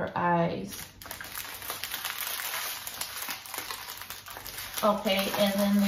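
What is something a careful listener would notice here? Plastic packets rustle close by.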